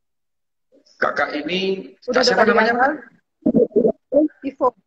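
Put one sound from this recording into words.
A young woman speaks tearfully over an online call.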